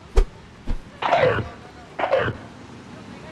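A dog snarls and growls in short bursts.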